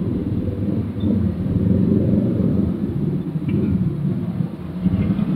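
Motorcycle engines hum and rumble steadily in slow traffic nearby.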